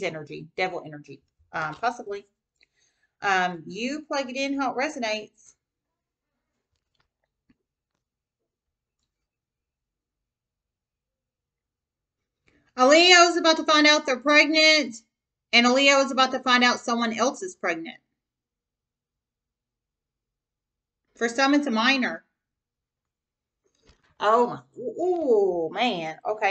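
A woman speaks calmly and close to the microphone, with pauses.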